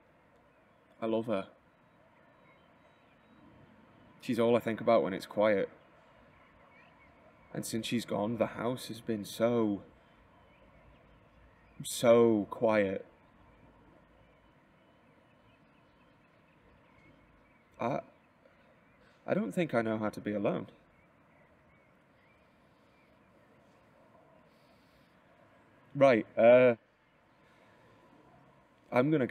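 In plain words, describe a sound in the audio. A young man speaks close by in short, irritated bursts with pauses between them.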